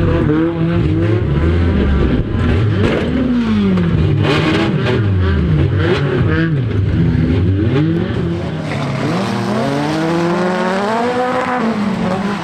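A race car engine roars and revs up and down close by.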